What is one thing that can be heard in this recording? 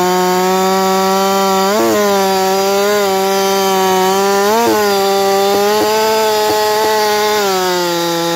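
A chainsaw engine roars loudly, rising briefly in pitch now and then as it cuts through a log.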